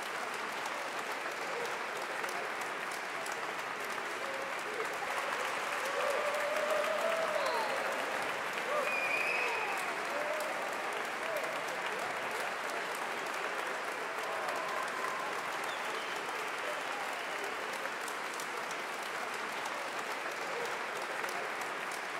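A large crowd applauds steadily in an echoing hall.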